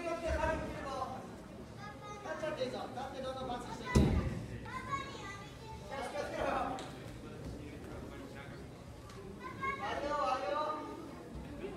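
A crowd of people chatter and call out in a large echoing hall.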